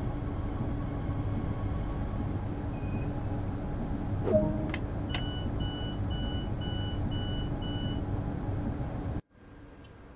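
Windscreen wipers sweep back and forth across the glass.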